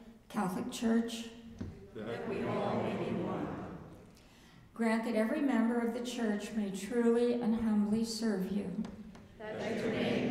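An elderly woman reads aloud calmly into a microphone.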